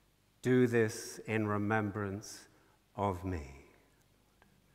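An elderly man chants loudly through a microphone in a large echoing hall.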